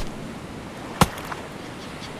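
A knife slashes through plant leaves with a sharp swish.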